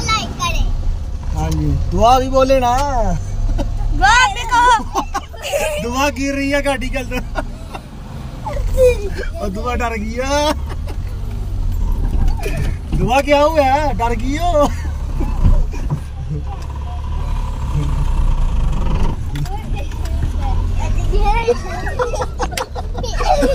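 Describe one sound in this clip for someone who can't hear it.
Children laugh close by.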